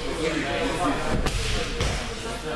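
A body thuds onto a mat.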